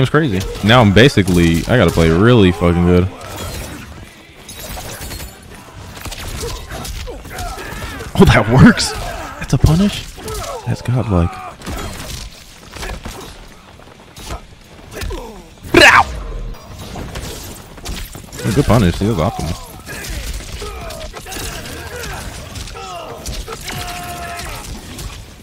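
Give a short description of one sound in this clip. Punches and kicks land with heavy thuds and cracks in a fighting game.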